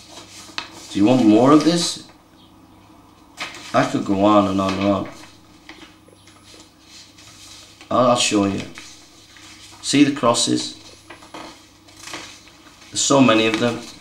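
A middle-aged man speaks slowly and calmly close by, in short phrases with pauses.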